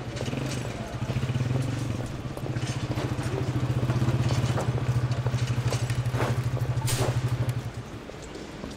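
A motorcycle engine idles loudly close by.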